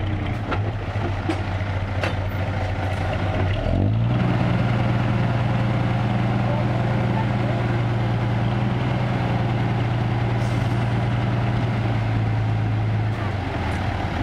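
A truck's diesel engine idles and then revs up loudly.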